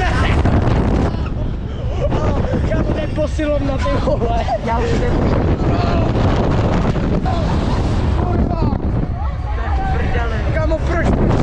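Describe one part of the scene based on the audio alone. Wind rushes loudly past a close microphone.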